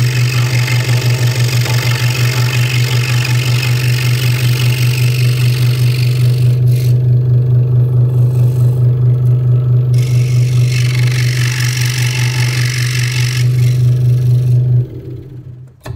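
A scroll saw buzzes steadily with a rapid chatter.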